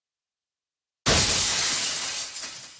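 A block shatters with a loud crash that slowly fades.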